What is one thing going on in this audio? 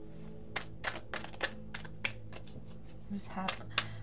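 Playing cards are shuffled with quick, crisp clicks.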